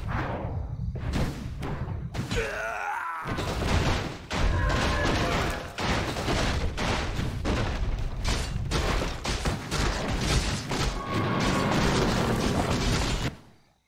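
Game weapons clash and hit again and again in a busy fight.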